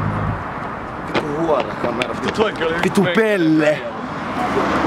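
A young man raps loudly and close by.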